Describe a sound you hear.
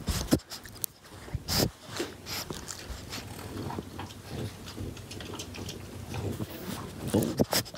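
A puppy sniffs and snuffles right up close.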